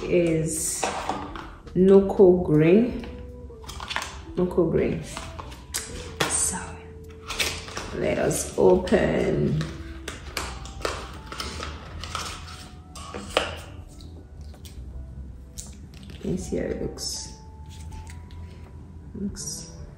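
Cardboard packaging rustles and taps in hands.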